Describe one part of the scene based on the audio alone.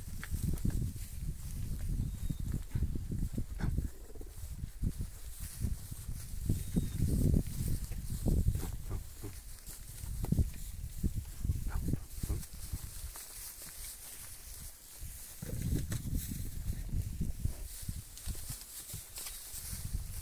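Hooves shuffle and thud on dry straw.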